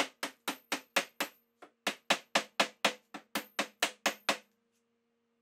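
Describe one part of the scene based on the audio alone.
A hatchet chops rapidly into wood with sharp, regular knocks.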